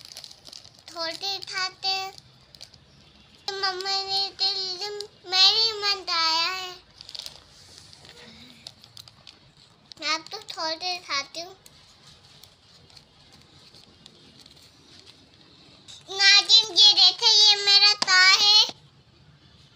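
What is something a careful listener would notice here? A young girl speaks close by in a high, lively voice.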